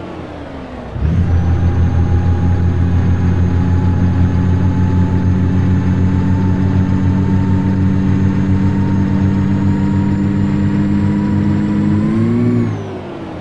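A heavy truck engine drones steadily at cruising speed, then revs up briefly and drops away.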